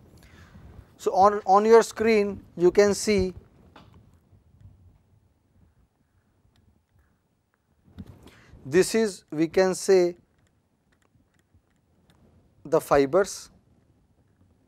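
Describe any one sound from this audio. A middle-aged man speaks calmly into a clip-on microphone.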